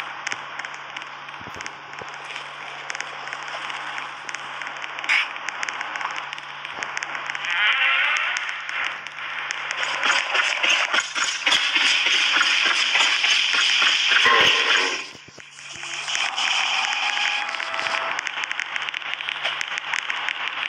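Quick footsteps patter along a hard floor.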